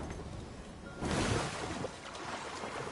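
A large splash hits water.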